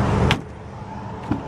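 A tailgate latch clicks open.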